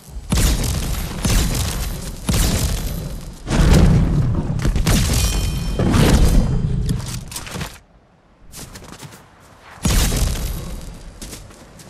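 Footsteps scrape and thud on a rocky slope.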